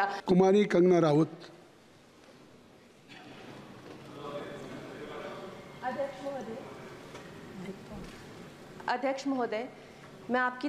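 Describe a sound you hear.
An elderly man speaks into a microphone in short bursts.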